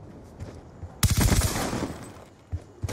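A rifle fires a quick, loud burst of shots.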